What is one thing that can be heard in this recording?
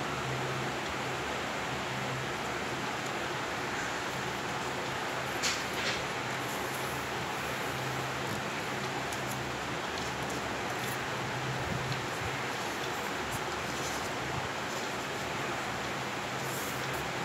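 Paper rustles and crinkles as it is folded and creased by hand.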